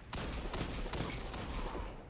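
A video game gun fires.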